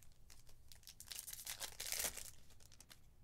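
A foil wrapper crinkles as it is torn open.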